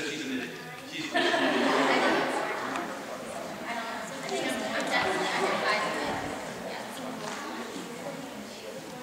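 A crowd of young girls cheers and screams loudly in a large hall.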